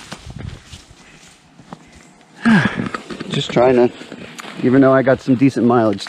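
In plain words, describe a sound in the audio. Footsteps crunch on dry leaves along a forest path.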